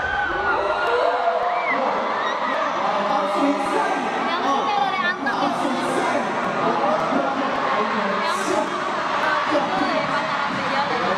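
A crowd screams and cheers.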